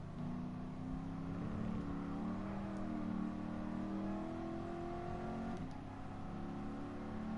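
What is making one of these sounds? A car engine revs higher as the car speeds up, then drops briefly with a gear change before climbing again.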